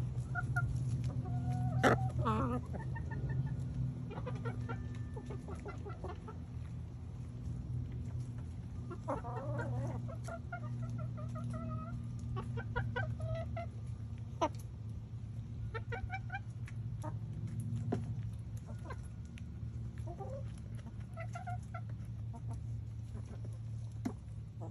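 Hens cluck and murmur softly nearby.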